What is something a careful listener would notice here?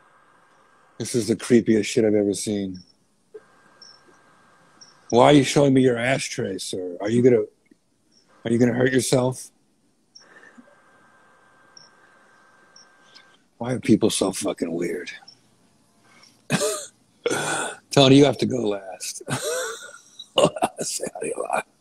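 A middle-aged man speaks with animation, close to the microphone, heard through an online call.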